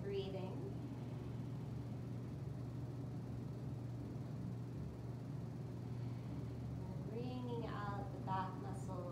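A floor fan hums steadily.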